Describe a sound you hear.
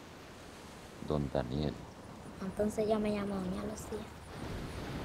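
A young girl speaks softly close by.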